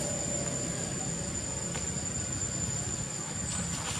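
A small monkey patters softly across dry dirt.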